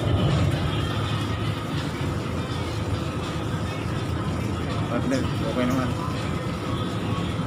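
Men and women murmur quietly in the background.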